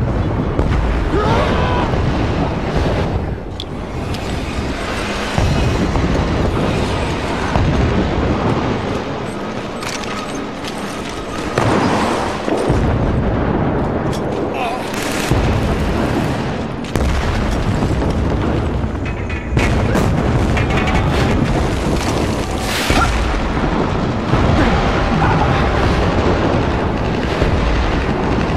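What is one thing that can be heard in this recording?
Gunfire rattles in a battle.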